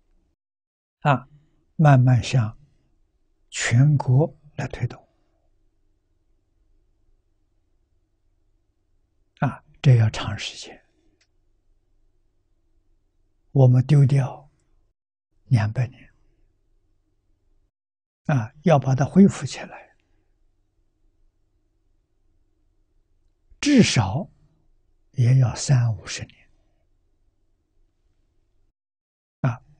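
An elderly man speaks calmly in short phrases with long pauses.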